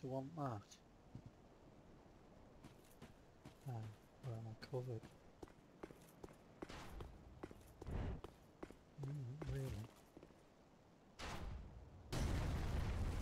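Armoured footsteps clank and tap on stone.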